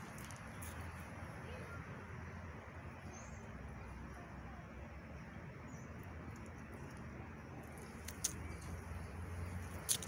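Outdoors, a light wind rustles leaves.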